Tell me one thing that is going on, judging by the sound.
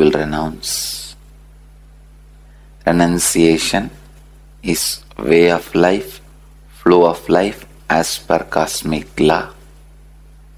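A man speaks calmly through a microphone, close by, with pauses.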